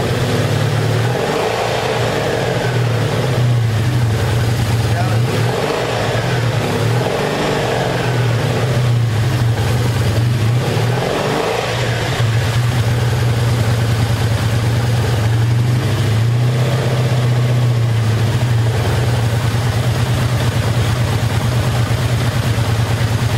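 A motorcycle engine idles with a steady, low rumble.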